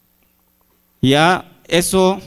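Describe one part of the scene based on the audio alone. A young man speaks loudly into a microphone through loudspeakers.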